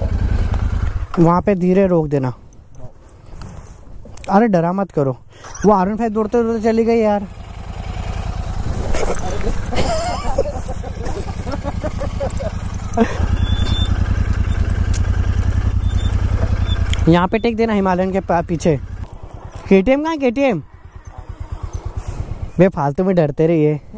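A motorcycle engine rumbles and throbs at low speed nearby.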